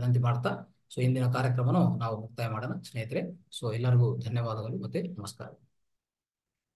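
A man speaks calmly through a microphone over an online call.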